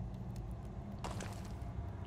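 A torch flame crackles softly.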